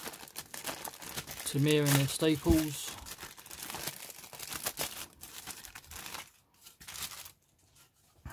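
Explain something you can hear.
A thin plastic bag crinkles as hands pull it off.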